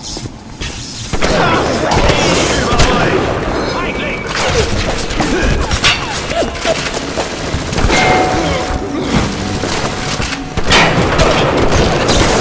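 A shotgun fires loudly in rapid blasts.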